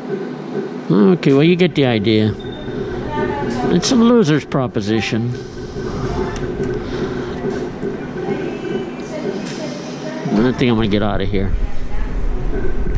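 A recorded voice from a gaming machine calls out numbers through a loudspeaker.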